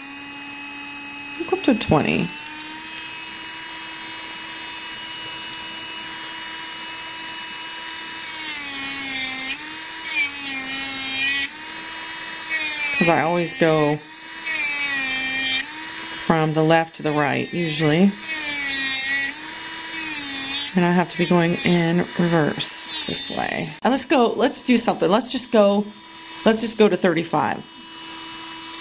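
A nail drill motor whines steadily, its pitch dipping slightly as it presses against a sanding band.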